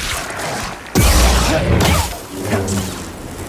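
A lightsaber swings and strikes with a loud crackle.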